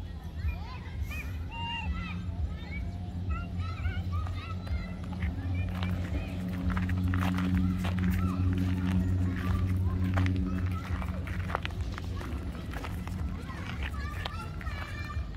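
A dog's paws crunch and patter on gravel.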